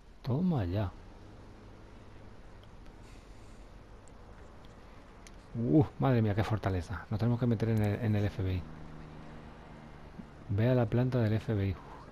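A man speaks calmly into a phone, close by.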